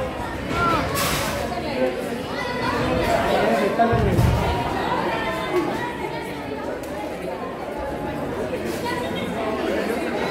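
Bodies thud onto a wrestling ring mat.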